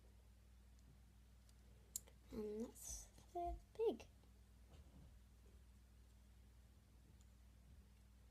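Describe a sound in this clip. Plastic toy parts click in a girl's hands.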